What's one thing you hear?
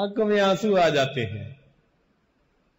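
An elderly man speaks in a drawn-out, chanting voice through a microphone.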